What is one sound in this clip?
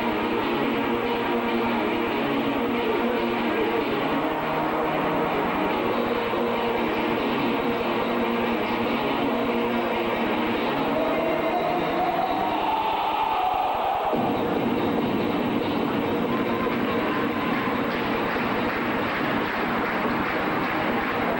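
Loud music plays over a loudspeaker in a large echoing hall.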